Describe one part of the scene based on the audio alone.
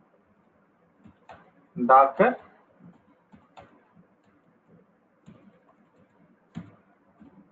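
Computer keys click as someone types.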